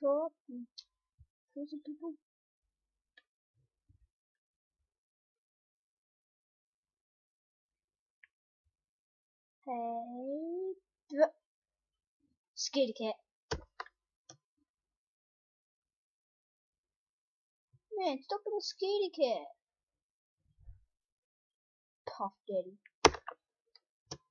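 A boy talks in short bursts, close to a microphone.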